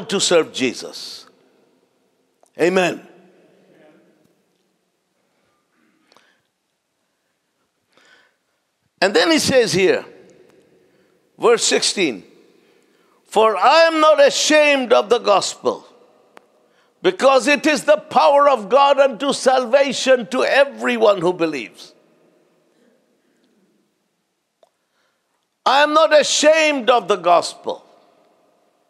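A man preaches with animation into a microphone, with pauses, in a large echoing hall.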